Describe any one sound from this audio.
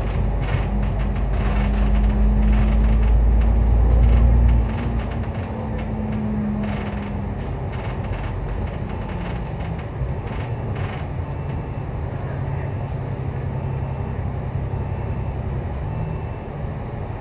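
A tram rumbles along its tracks with a low steady drone.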